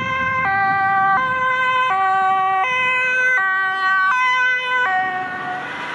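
An engine hums as a vehicle drives past.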